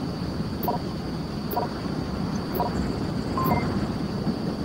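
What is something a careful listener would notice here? Keypad buttons beep with short electronic tones.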